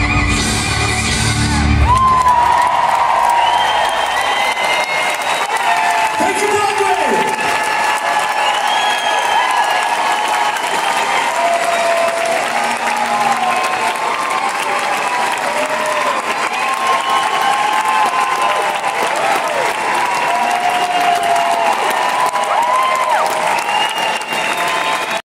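A large crowd cheers and applauds loudly in a big hall.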